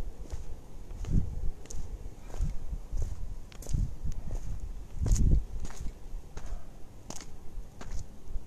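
Branches brush and scrape past close by, with sharp snaps and rustles.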